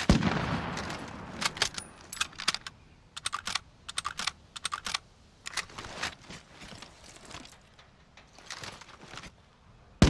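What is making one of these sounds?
Metal clicks and clacks as a rifle is reloaded.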